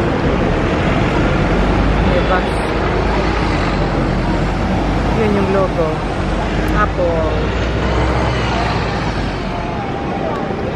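A bus engine rumbles as the bus passes close by.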